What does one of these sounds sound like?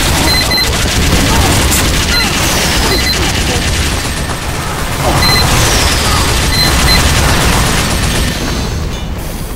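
A rapid-firing gun rattles loudly in quick bursts.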